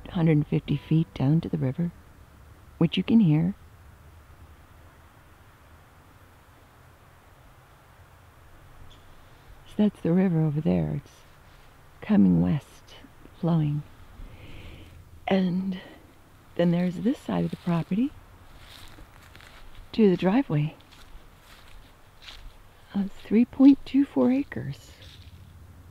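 A woman speaks close by in short bursts, calmly.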